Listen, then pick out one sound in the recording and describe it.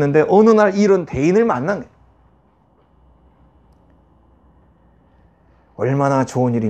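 A middle-aged man speaks calmly into a clip-on microphone, pausing between phrases.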